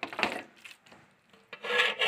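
A metal spoon scrapes and stirs food in a pot.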